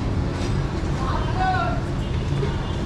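A woman talks briefly nearby.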